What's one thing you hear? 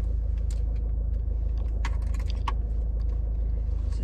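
Keys jingle and clink.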